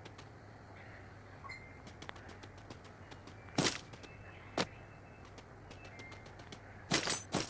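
Footsteps patter quickly as a game character runs.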